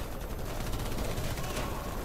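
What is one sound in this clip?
Distant gunfire crackles in bursts.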